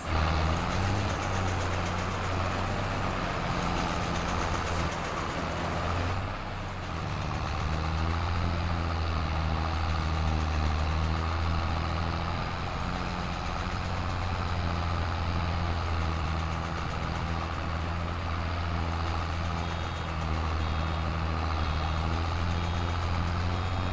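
A tractor engine runs steadily with a low rumble.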